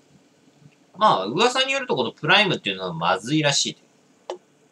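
Beer pours and gurgles into a glass.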